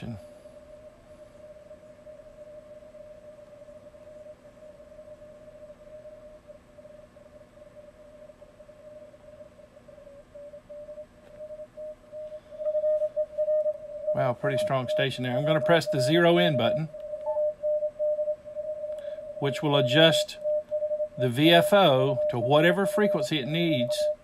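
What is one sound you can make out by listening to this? A radio receiver hums with a steady high tone that shifts slightly in pitch as it is tuned.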